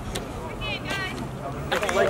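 A young man shouts with excitement outdoors.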